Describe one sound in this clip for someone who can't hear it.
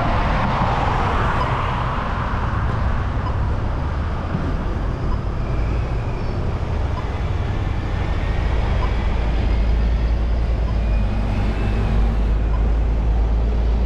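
Buses drive past with a low engine rumble.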